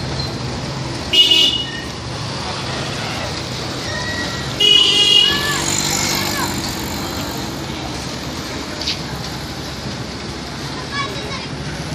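A motorcycle engine hums as a rider pulls away.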